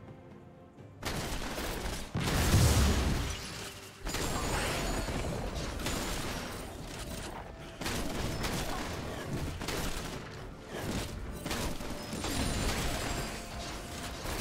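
Spell blasts burst and crackle during a fight.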